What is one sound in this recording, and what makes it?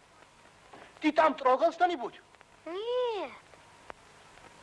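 A young boy calls out in a rising and falling voice.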